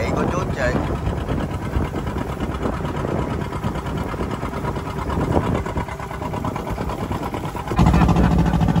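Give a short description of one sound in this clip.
Waves splash and rush against a boat's hull.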